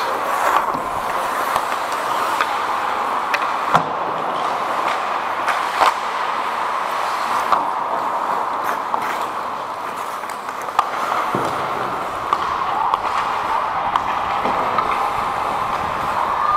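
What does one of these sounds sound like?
Hockey sticks clack against a puck now and then.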